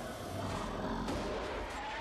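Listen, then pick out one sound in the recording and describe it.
A fire roars and crackles loudly.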